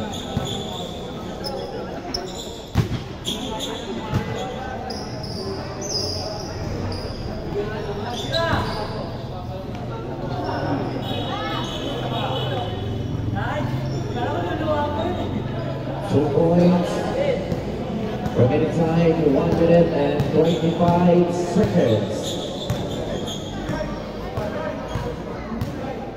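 Young men call out and talk during play.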